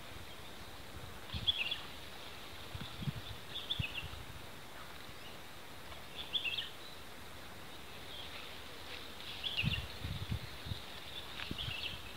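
Shallow water sloshes softly around a man's legs as he wades.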